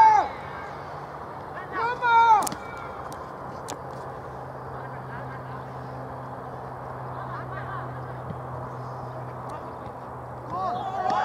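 Men shout across an open field.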